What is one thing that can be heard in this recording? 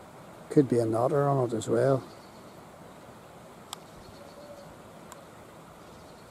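A shallow stream babbles and rushes over stones outdoors.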